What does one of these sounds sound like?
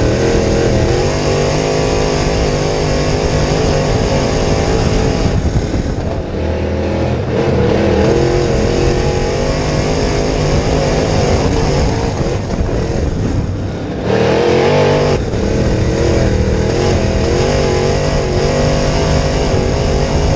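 A race car engine roars loudly close by, revving up and down.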